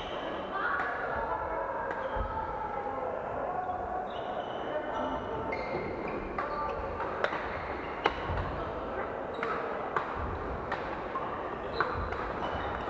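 Shoes squeak on the floor.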